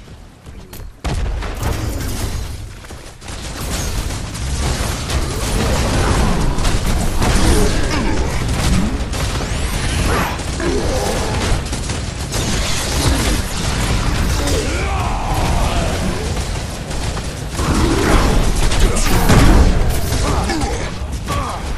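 Weapons clash and blasts burst in a game fight.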